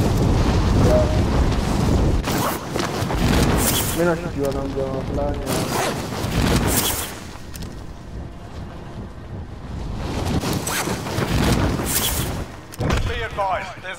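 Wind rushes past during a freefall.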